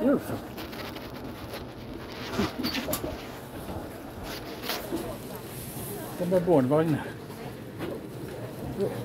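A train hums steadily.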